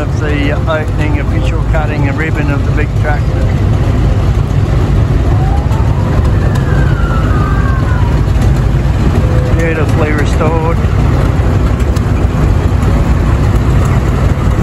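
Old tractor engines chug and rumble steadily, coming closer.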